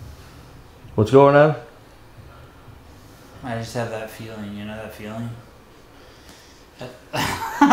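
A middle-aged man groans and sighs softly.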